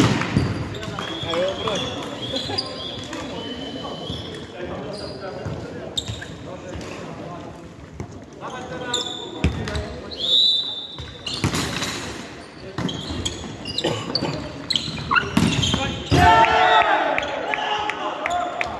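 Sneakers squeak on the hard floor.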